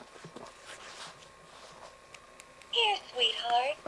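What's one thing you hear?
A plush toy rustles as a hand squeezes it.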